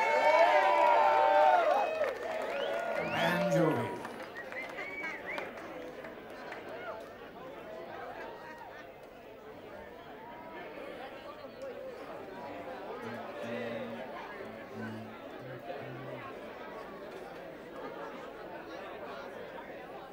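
An audience murmurs and chatters in a large room.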